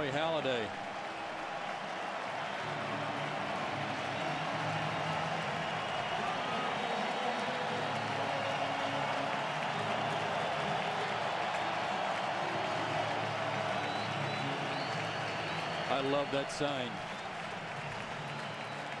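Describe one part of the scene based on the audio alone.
A large crowd cheers and roars loudly in a big open stadium.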